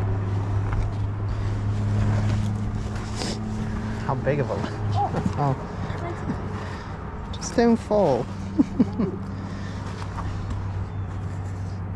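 Shoes scuff and scrape on rock close by.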